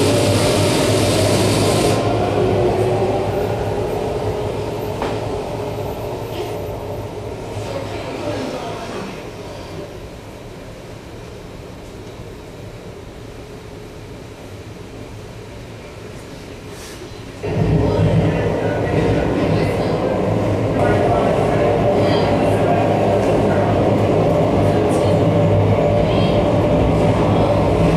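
Droning electronic music plays through loudspeakers, fading down and then surging back loud.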